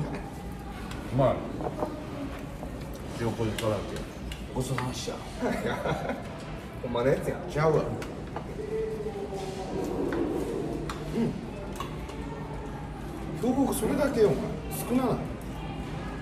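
Chopsticks and bowls clink on a table.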